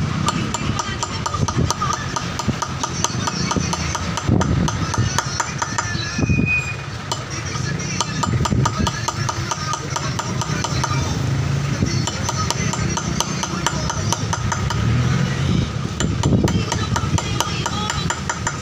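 A small hammer taps a chisel rapidly, engraving polished granite.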